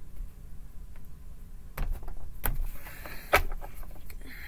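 Cards tap down onto a table.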